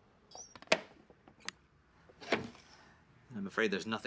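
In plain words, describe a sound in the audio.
A wooden box is set down on a glass counter with a knock.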